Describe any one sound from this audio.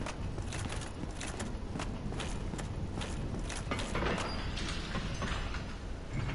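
Heavy armored footsteps clank quickly on stone.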